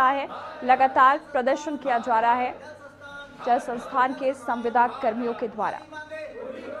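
A man shouts slogans for the crowd to repeat.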